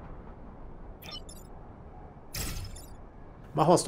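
A game gives short electronic blips.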